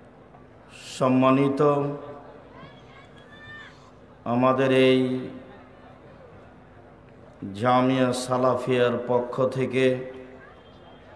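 A man preaches loudly into a microphone in bursts, heard through loudspeakers with an echo.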